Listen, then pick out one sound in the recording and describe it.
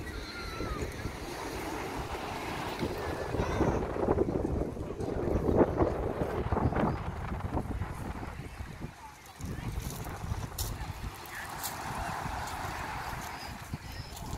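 Small waves break gently on a shingle beach.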